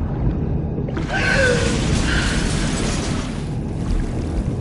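A young woman grunts and gasps with effort, close by.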